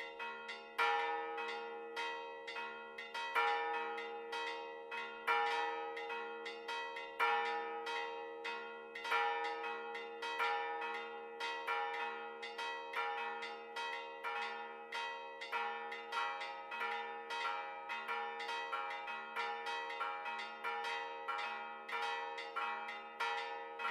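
Church bells ring a rapid, steady peal with a ringing tone.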